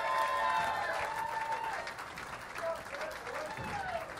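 A crowd claps and cheers in a large echoing hall.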